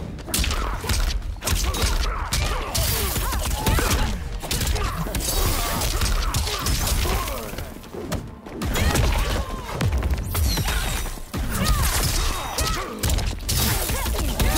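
Heavy punches and kicks land with loud thuds and cracks.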